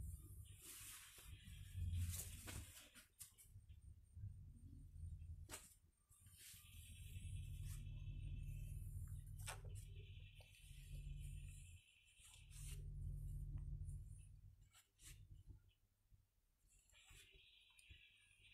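Scissors snip through hair.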